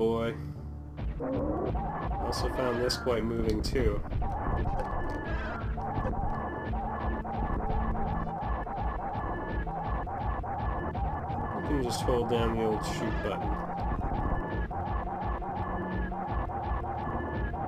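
Electronic game music plays steadily.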